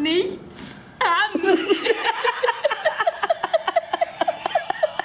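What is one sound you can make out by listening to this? A young woman laughs in rapid high giggles up close.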